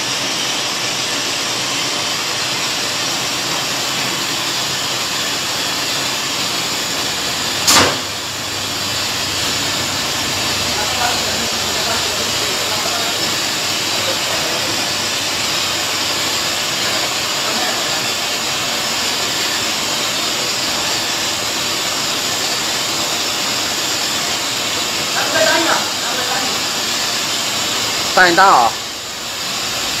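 A bottling machine hums and whirs steadily.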